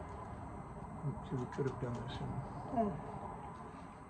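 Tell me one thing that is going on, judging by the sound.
An elderly man speaks in a low voice close to a microphone.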